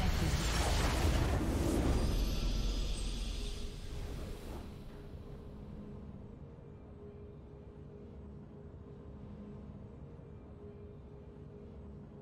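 A triumphant fanfare plays and fades.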